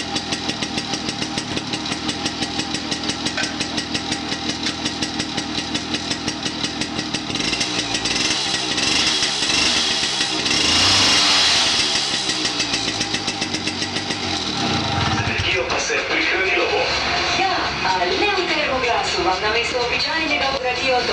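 A small petrol engine chugs steadily close by.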